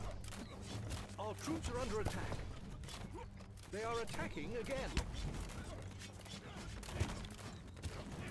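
Weapons clash as a battle rages at a wall.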